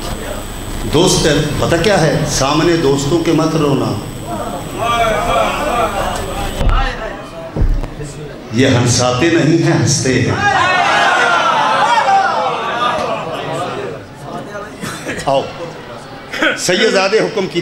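A man recites loudly and with passion into a microphone, his voice echoing through loudspeakers.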